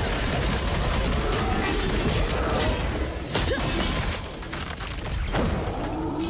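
Sharp game hit sounds crack again and again.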